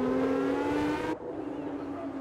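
A racing car engine screams close by at high revs.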